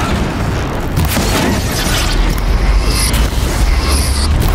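An electric blast crackles and bursts.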